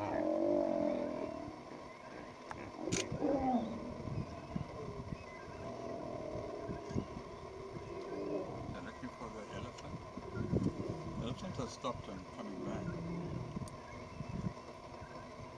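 Male lions growl and snarl during a fight.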